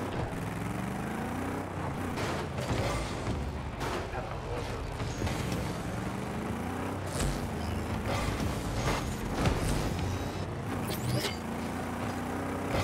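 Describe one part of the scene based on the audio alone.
Car engines hum and roar steadily.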